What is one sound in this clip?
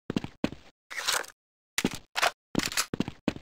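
A rifle clicks as it is reloaded.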